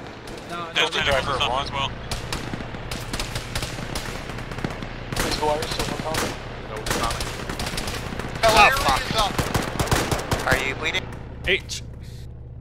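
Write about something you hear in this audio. Gunshots crack in quick bursts, loud and close.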